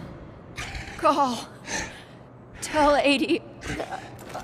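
A young man gasps and speaks in a strained, choking voice.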